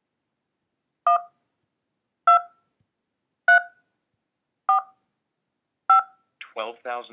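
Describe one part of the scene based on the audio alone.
Phone keypad tones beep one at a time, evenly spaced.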